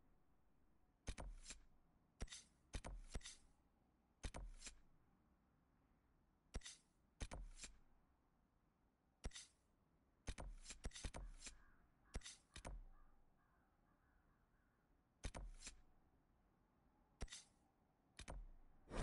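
Soft swishing clicks come as menu pages flip.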